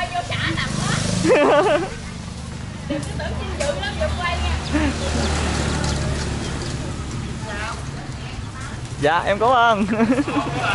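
A hen clucks nearby.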